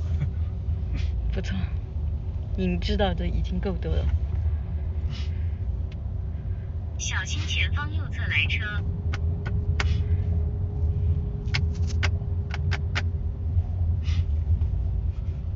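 A car engine rumbles low and steadily.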